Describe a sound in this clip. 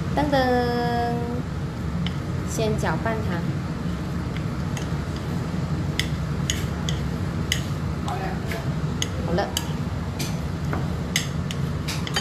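Chopsticks click and tap against a plate.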